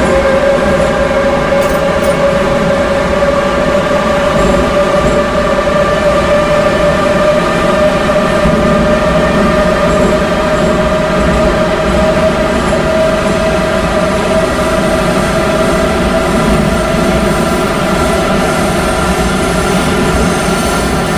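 A train's electric motor whines steadily, rising slightly in pitch as it speeds up.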